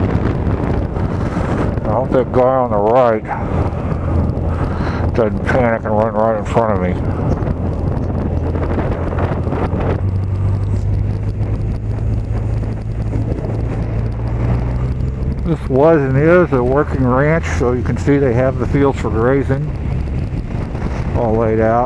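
Tyres rumble on a paved road.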